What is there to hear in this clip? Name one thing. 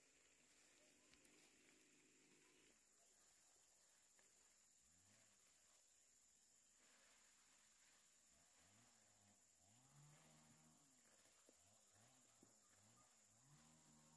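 Leaves rustle softly as plants are picked by hand.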